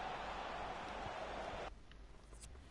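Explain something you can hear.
A large crowd murmurs steadily in a stadium, then cuts off.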